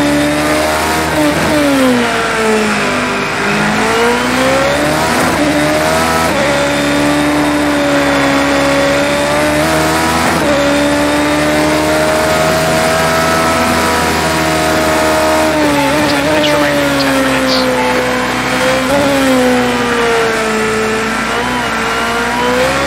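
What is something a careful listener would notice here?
A racing car engine screams loudly, its pitch rising and falling as it speeds up and slows down.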